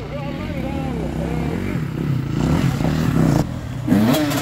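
A dirt bike approaches.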